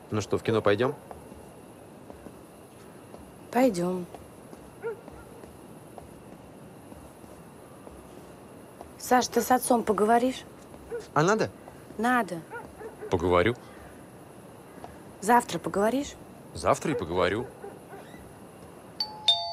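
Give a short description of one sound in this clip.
A young man talks quietly outdoors.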